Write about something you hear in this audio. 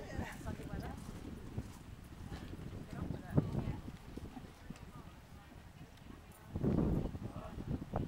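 A horse's hooves thud softly on loose ground as it canters past.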